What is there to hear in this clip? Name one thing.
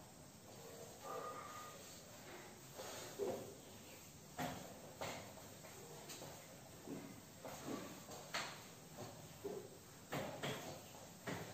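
A cloth rubs and squeaks against a whiteboard in quick strokes.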